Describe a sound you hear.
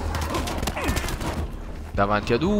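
Gunshots fire in rapid bursts.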